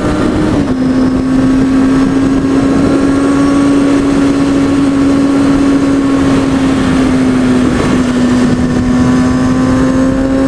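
Wind rushes loudly past the rider's helmet.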